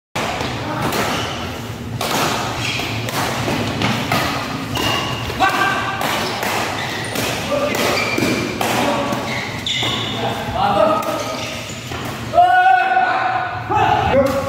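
Shoes squeak on a hard floor.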